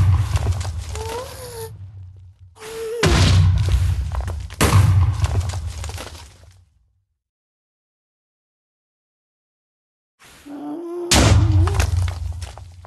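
A creature gives short shrill wails.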